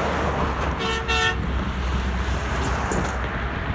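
A large truck rumbles past at speed.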